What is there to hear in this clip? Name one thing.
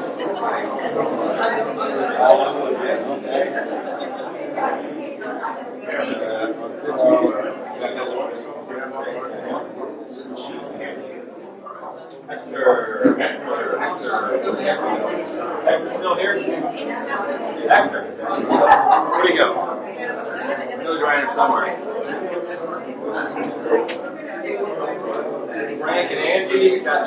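A crowd of men and women chat all at once, filling an indoor room with a busy murmur.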